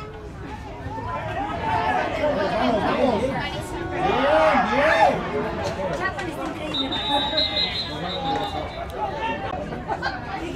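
Young men shout and cheer outdoors from close by.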